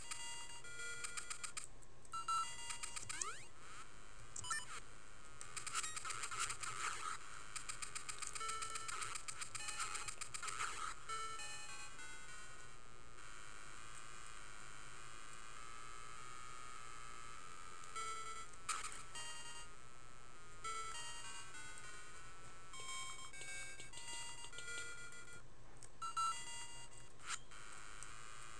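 Chiptune game music plays steadily.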